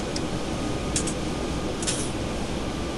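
A switch clicks twice.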